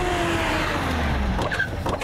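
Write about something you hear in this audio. A van engine hums as it drives slowly closer.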